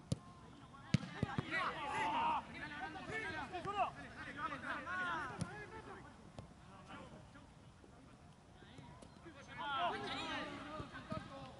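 Young men shout to each other across an outdoor pitch.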